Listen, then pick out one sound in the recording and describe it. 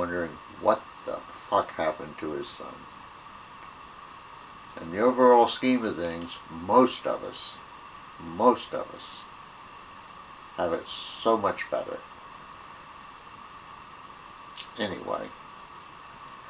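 An elderly man talks calmly and with pauses, close by.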